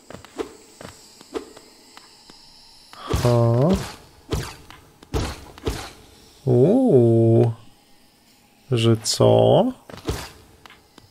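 Small footsteps tap on hard ground.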